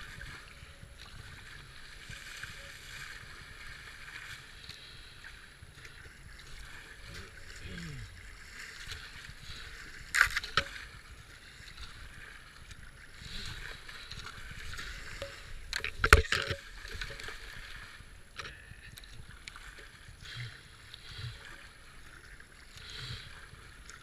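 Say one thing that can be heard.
A paddle splashes and dips into the water.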